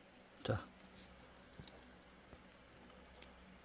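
A dog chews food with soft wet clicks.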